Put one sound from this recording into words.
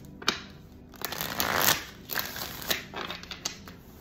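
A deck of cards riffles quickly as it is shuffled.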